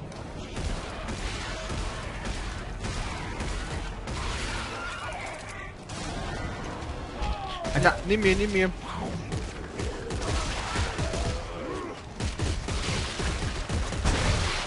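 A gun fires with sharp blasts.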